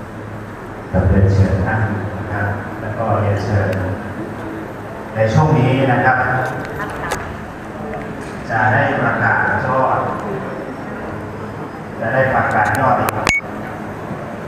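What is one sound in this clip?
A man speaks loudly through a loudspeaker in short bursts.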